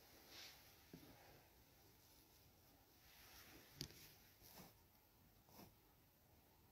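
A woman speaks quietly and briefly close by.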